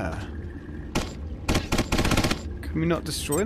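A submachine gun fires a rapid burst.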